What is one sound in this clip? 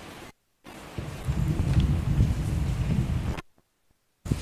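A man speaks calmly and slowly into a microphone.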